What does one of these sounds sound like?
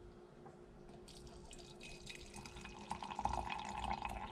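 Tea pours and splashes into a glass cup.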